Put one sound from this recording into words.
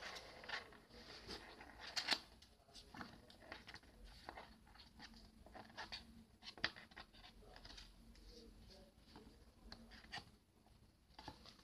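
Stiff cards rustle and flick as they are shuffled by hand, close by.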